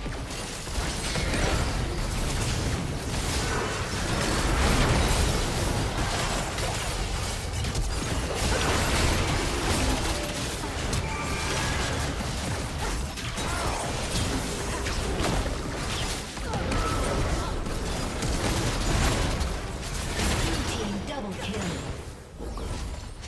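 Game spell effects crackle, blast and clash in a busy fight.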